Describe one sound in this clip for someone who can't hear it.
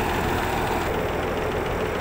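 An excavator engine idles with a steady low rumble.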